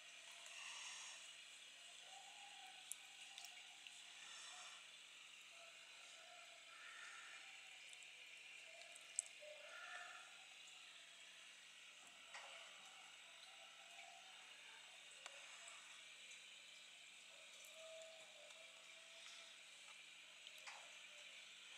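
Air bubbles gurgle and fizz steadily in water.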